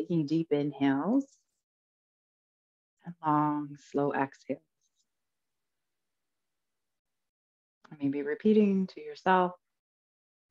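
A woman speaks calmly into a close headset microphone, with pauses.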